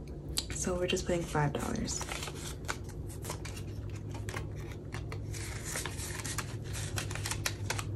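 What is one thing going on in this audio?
Banknotes rustle as they are counted.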